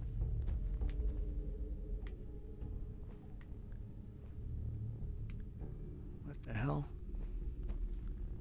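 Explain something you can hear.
Footsteps tread on a hard metal floor.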